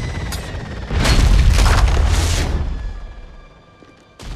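A huge blast roars and rumbles, then fades.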